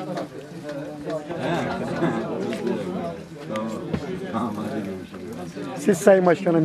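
Several men talk in the background.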